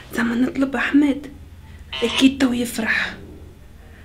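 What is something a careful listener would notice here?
A young woman speaks quietly close by.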